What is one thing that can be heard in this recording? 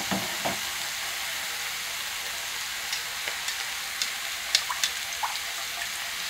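Chopsticks clack against a pan as food is stirred.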